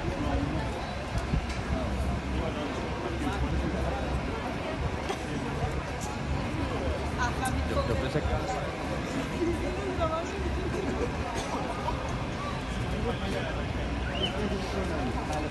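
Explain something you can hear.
A crowd of people chatters all around, echoing in a large space.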